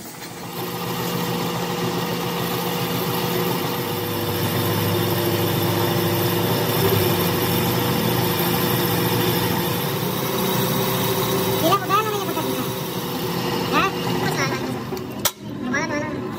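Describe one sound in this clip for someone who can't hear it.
A lathe spins with a steady mechanical hum.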